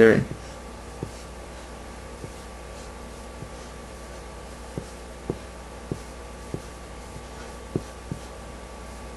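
A felt marker squeaks and taps against paper.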